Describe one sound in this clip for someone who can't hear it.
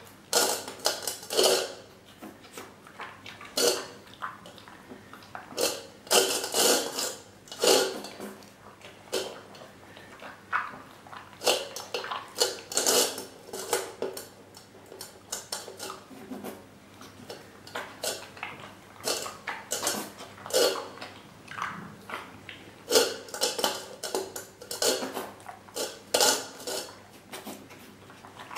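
A bear cub eats noisily, smacking and slurping close by.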